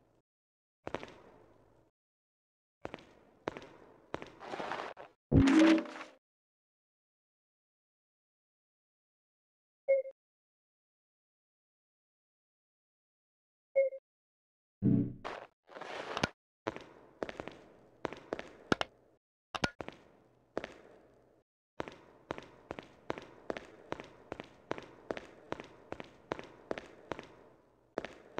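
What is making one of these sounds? Footsteps thud on a hard floor at a steady pace.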